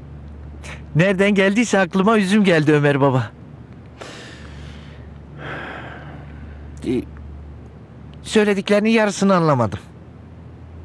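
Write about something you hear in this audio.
A man speaks calmly and cheerfully nearby.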